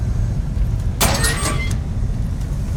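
A metal vent grate clanks open.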